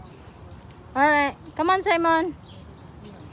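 A young child shouts out loudly nearby.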